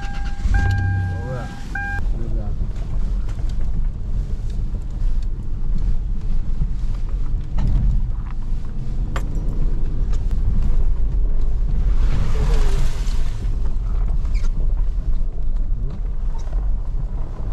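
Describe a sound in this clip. Tyres crunch and bump over rough, snowy ground.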